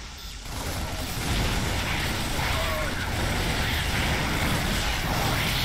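Rapid gunfire and blasts rattle in a battle.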